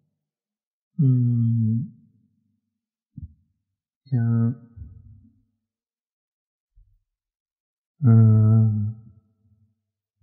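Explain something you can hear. A young man speaks calmly and haltingly into a microphone, in short phrases with pauses.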